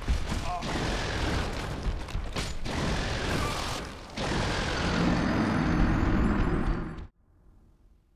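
Fire roars and crackles in a burst of flame.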